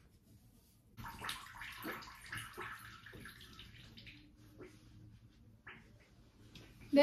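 A towel rubs softly against a face.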